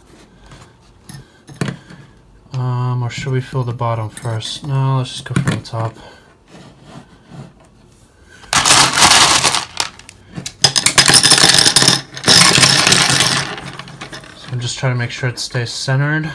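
A wire mesh cage rattles as hands handle it.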